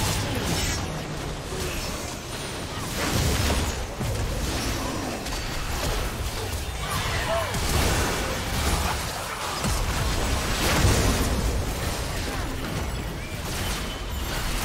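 Magic spells crackle and burst in a fantasy battle.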